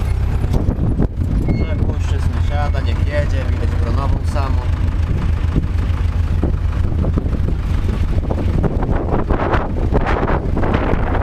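A tractor engine rumbles steadily, heard loud and close from inside the cab.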